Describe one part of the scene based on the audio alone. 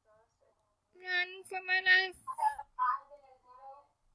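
A young woman talks excitedly into a microphone.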